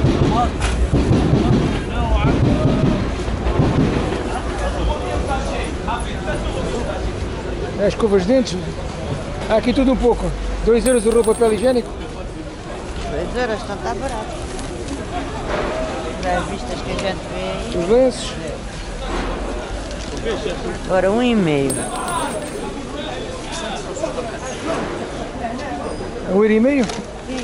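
A crowd murmurs and chatters all around.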